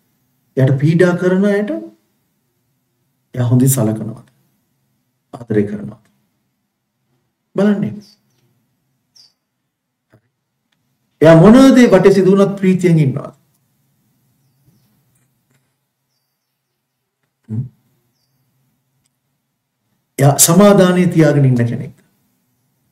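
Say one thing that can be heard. A middle-aged man speaks calmly and earnestly into a close microphone, in short phrases with long pauses.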